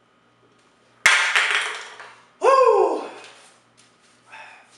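A young man gasps and coughs loudly.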